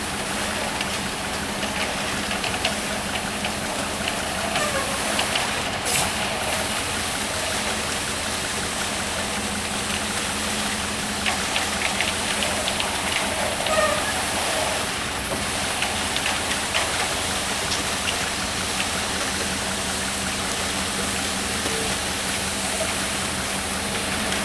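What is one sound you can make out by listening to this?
A concrete mixer truck's engine rumbles steadily nearby.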